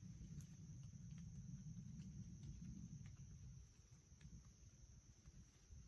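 Footsteps crunch on dry leaves.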